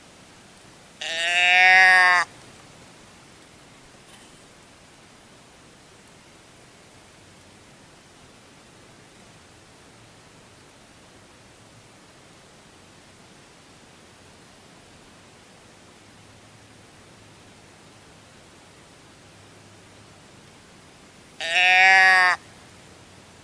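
A tip-over game call gives a loud, nasal bleat twice.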